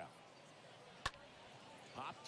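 A bat cracks sharply against a baseball.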